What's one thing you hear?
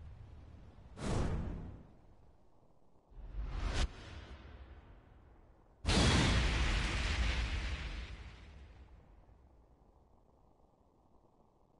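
A loud explosion booms and rumbles out.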